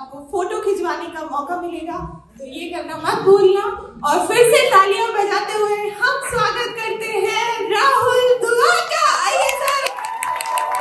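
A woman talks with animation through a microphone, amplified in a large hall.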